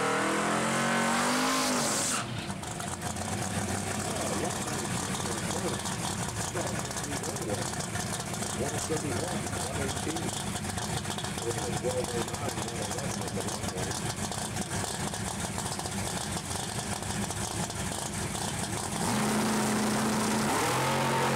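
A hot rod's engine revs up and down.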